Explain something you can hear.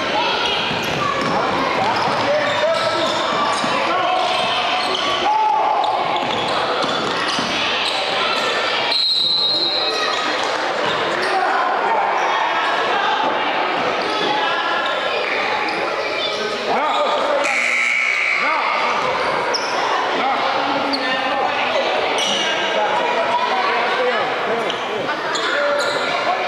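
A crowd chatters and shouts in a large echoing gym.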